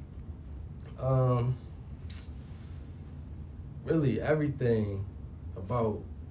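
A young man speaks calmly and close into a microphone, in short bursts.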